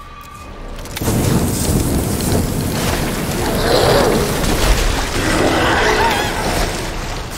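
A flamethrower roars with a loud rushing blast of fire.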